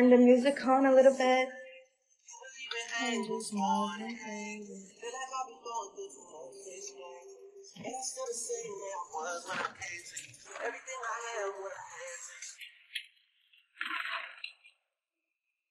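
A young woman talks close to the microphone with animation.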